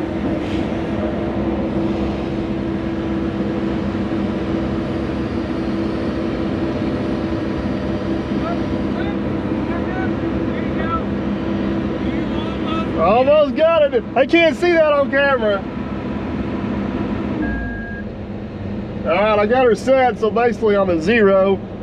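An excavator engine hums steadily from inside the cab.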